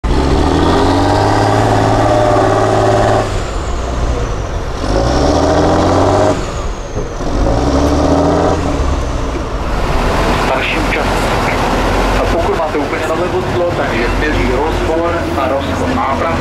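A heavy truck engine roars and revs hard in bursts.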